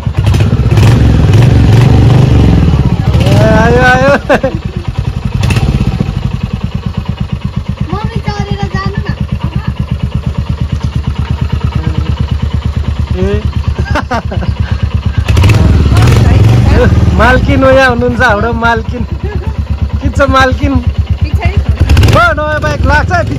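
A motorcycle engine idles with a steady low throbbing, close by.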